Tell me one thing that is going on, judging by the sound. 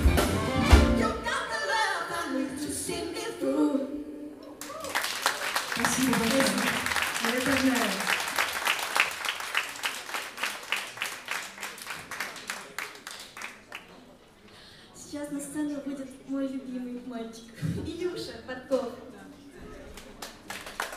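A young woman sings into a microphone.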